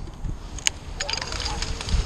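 A hand saw rasps through a tree branch in quick strokes.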